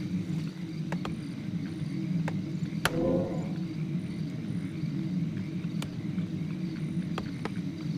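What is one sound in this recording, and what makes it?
Short clicks sound now and then.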